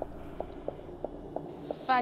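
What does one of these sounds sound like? An electronic meter ticks rapidly and steadily.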